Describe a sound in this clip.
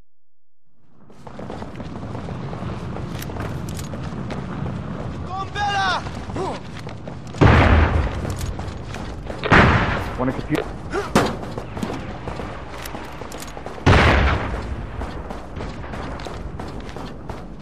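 Heavy boots run across metal floors.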